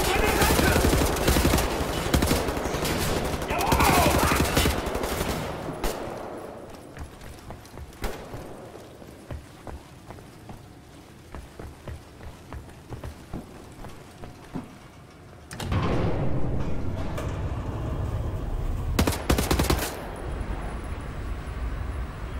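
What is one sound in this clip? Footsteps clank on metal walkways.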